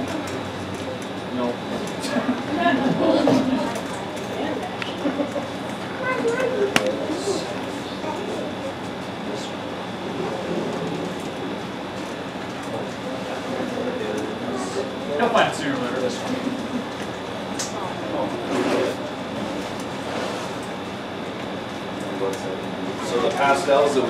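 Children and adults murmur and chatter in a room.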